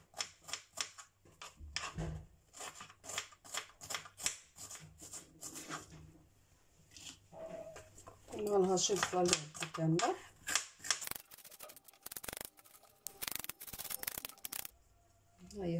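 A knife chops quickly on a plastic cutting board.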